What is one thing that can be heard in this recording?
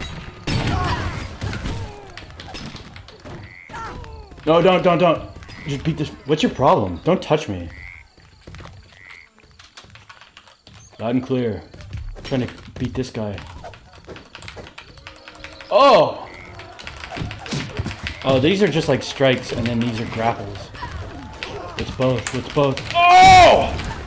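Punches land with dull thuds in a brawl.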